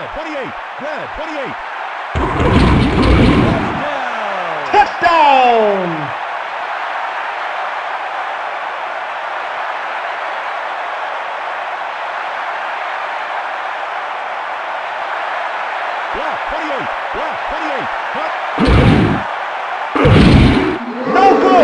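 A large stadium crowd roars steadily, swelling in loud bursts.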